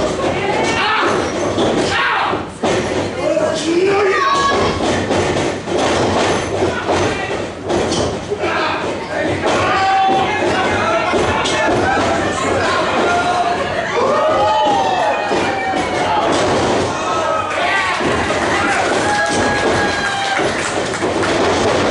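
A crowd cheers and shouts close by.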